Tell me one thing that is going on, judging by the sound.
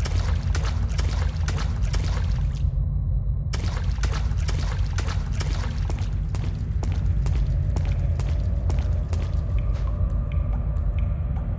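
Footsteps tread steadily on a hard stone floor.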